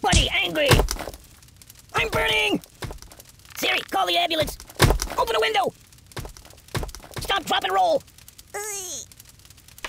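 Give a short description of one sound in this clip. Heavy rocks thud and crash in quick bursts.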